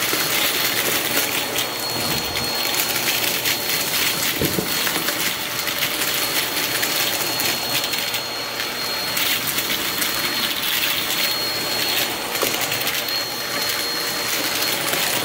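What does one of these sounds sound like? A vacuum cleaner whirs loudly and steadily with a high whine.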